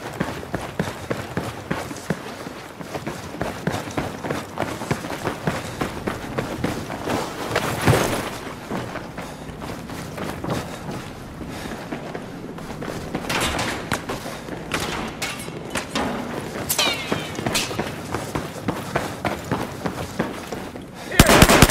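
Footsteps thud quickly on a hard floor.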